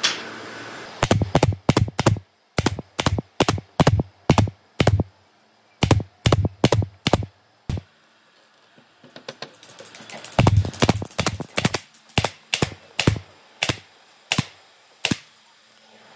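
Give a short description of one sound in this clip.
A pneumatic nail gun fires nails with sharp bursts of snapping shots.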